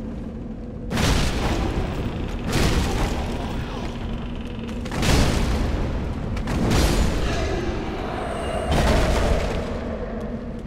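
A sword swings and strikes with heavy whooshing blows.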